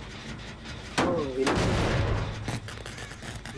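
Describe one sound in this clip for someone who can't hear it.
A metal machine is kicked and clanks.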